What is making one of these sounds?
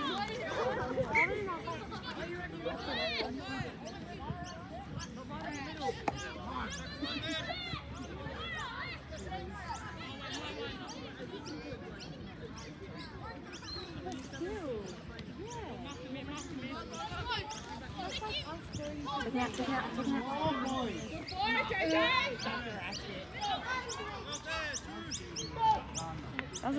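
Young players and spectators shout and call out outdoors across an open field.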